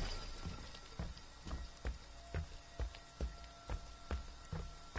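Heavy footsteps thud slowly across a wooden floor.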